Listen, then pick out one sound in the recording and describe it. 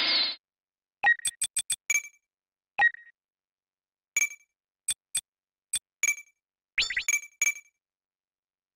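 Short electronic menu beeps click in quick succession.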